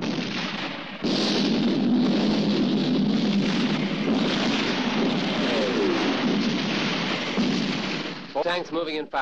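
Explosions boom and roar loudly outdoors.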